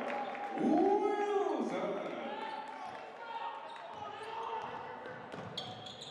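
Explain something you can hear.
A basketball bounces on the floor with hollow thumps.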